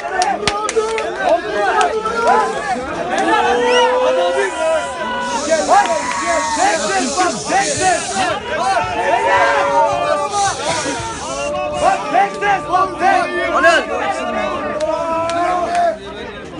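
A crowd claps hands in rhythm.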